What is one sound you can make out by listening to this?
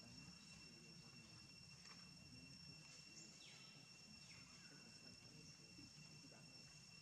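A baby monkey suckles softly.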